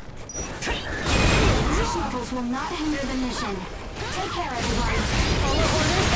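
A large beast growls and thrashes during a fight.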